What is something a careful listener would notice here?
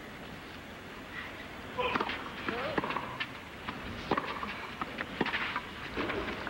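A tennis ball is struck hard with a racket, back and forth.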